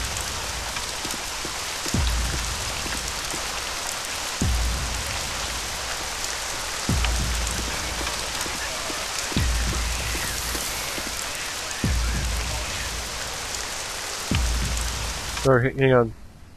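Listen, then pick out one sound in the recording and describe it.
Rain falls steadily with a soft hiss.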